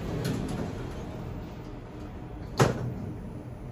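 Elevator doors slide shut with a thud.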